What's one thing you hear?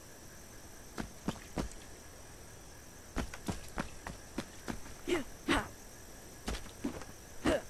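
Footsteps patter in quick, uneven steps.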